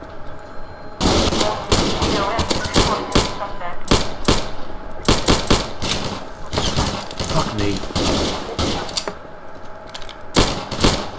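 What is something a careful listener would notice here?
Gunshots fire in rapid bursts and echo off hard walls.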